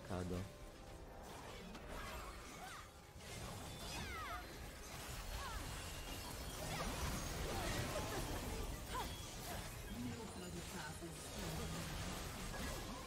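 Video game battle effects whoosh, zap and clash.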